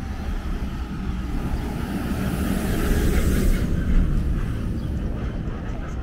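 A car drives past, swelling and fading.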